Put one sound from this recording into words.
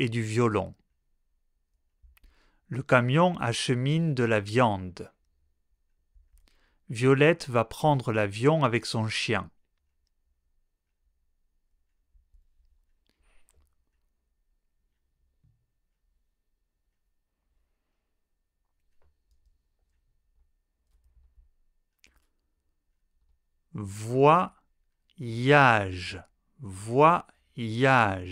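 A man speaks calmly and clearly into a close microphone, reading out short phrases with long pauses between them.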